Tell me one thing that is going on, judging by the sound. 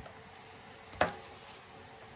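A canvas knocks softly against a turntable.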